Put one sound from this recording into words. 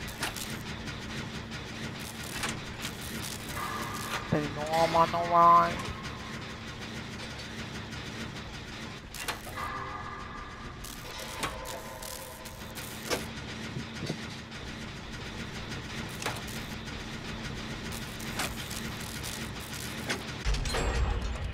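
A generator engine clanks and rattles.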